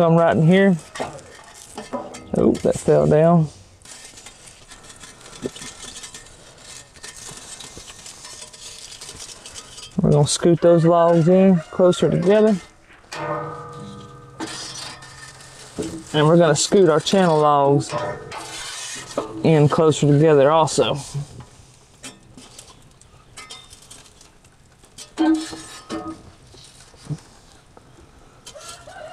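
A metal tool scrapes and knocks against wood and ash in a metal firebox.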